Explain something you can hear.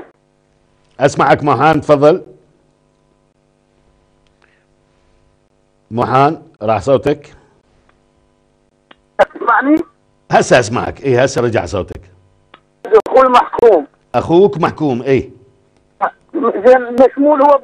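A middle-aged man speaks calmly and clearly into a close microphone, with pauses.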